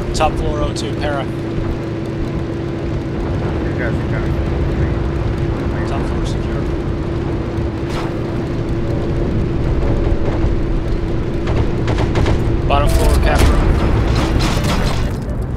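A motorcycle engine drones steadily.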